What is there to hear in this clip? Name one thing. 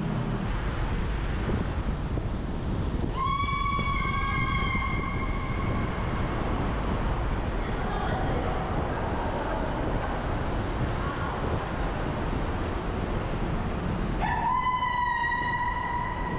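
Wind rushes loudly past while cycling fast.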